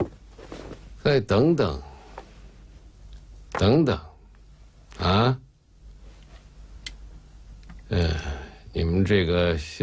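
An elderly man speaks in a loud, strained voice.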